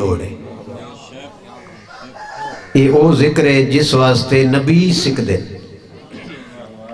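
A middle-aged man speaks with passion into a microphone, loudly amplified.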